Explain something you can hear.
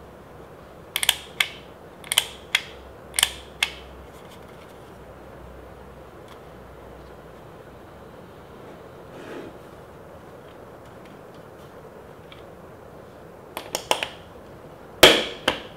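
A small paper punch clicks and snaps sharply several times.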